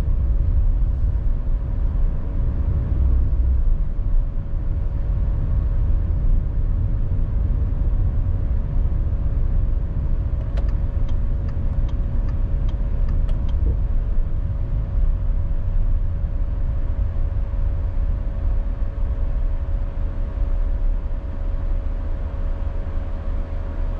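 Tyres roll on asphalt with a low rumble.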